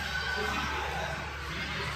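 A crowd of adults and children chatters nearby in an echoing room.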